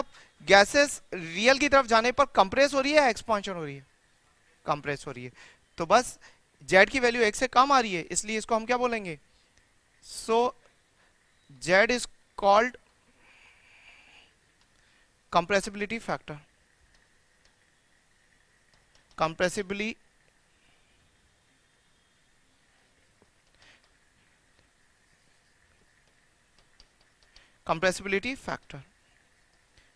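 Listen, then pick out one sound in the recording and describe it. A man lectures with animation, close to a microphone, with pauses between phrases.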